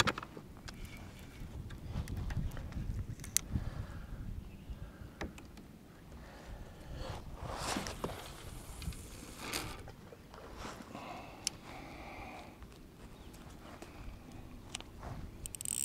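A fishing reel clicks softly as its handle is turned.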